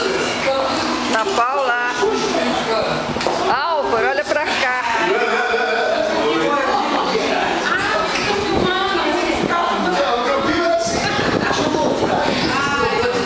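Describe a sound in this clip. Several young people talk and laugh together close by.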